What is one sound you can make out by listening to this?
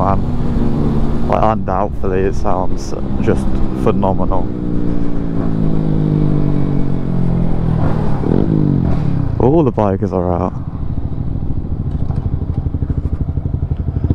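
A motorcycle engine hums steadily up close, its pitch falling as it slows.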